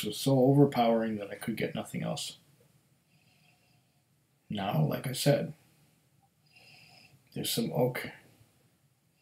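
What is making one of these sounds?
A middle-aged man speaks calmly and close up, in short bursts with pauses.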